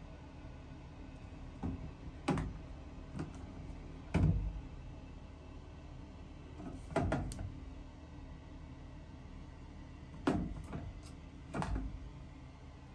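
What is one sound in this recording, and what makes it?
Plastic bottles knock and clatter against a shelf.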